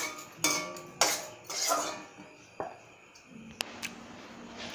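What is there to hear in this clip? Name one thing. Metal pots clank and clatter nearby.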